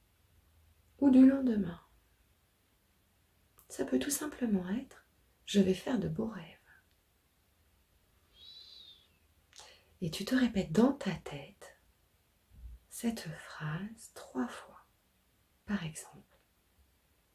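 A middle-aged woman speaks calmly and close by, in short phrases with pauses.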